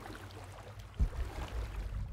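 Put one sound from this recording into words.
Water splashes as a body drops in.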